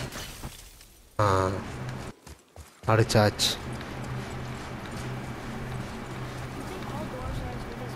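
Heavy footsteps crunch over rough ground.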